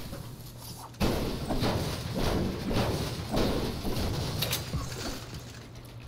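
An explosion roars with a crackling rumble.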